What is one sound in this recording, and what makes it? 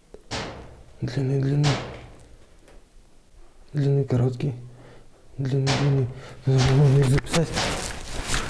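A man speaks quietly and calmly close by.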